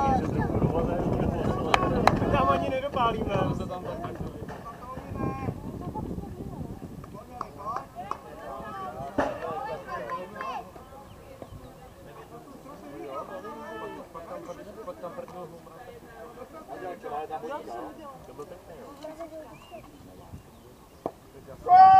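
Men call out and talk outdoors at a distance.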